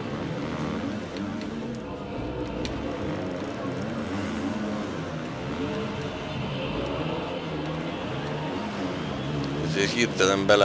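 A motorcycle engine revs and whines, its pitch rising and falling.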